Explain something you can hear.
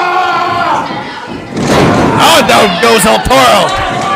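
A wrestler's body slams down onto a wrestling ring mat with a heavy thud.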